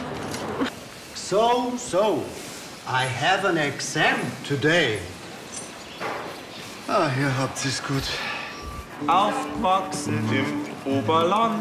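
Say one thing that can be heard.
An elderly man talks gruffly.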